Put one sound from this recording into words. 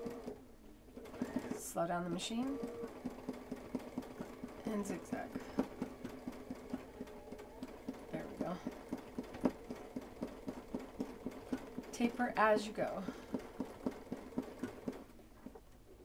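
An embroidery machine whirs and taps rapidly as it stitches.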